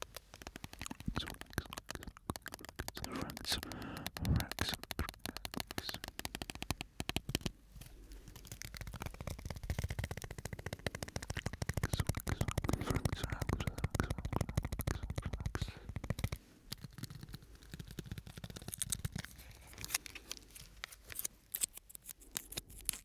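A man whispers softly close to a microphone.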